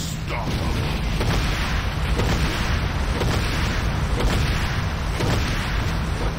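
Cannon shots fire in quick succession.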